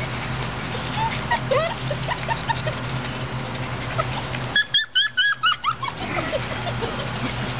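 Puppies whimper and yelp in high voices.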